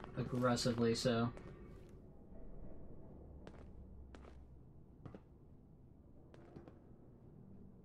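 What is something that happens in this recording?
Footsteps tread lightly on a hard floor.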